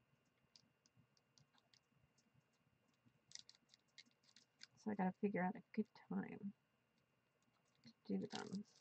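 A pencil scratches lightly on paper in short strokes.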